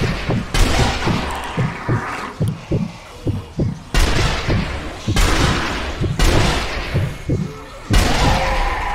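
Loud rifle shots ring out one at a time, each with a rolling echo.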